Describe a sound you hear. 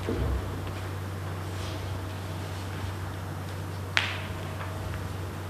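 Sheets of paper rustle close by.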